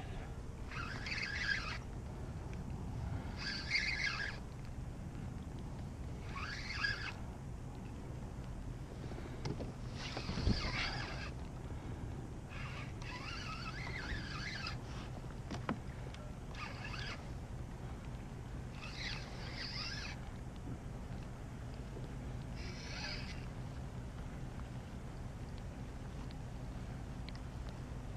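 Wind rumbles steadily across the microphone outdoors on open water.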